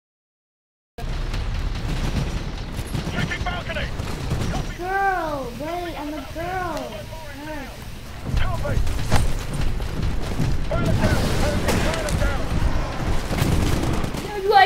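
Loud game battle noise rumbles steadily with thuds and bangs.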